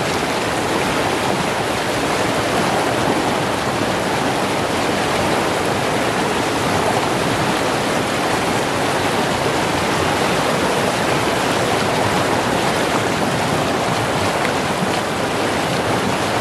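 A man splashes in fast-flowing water.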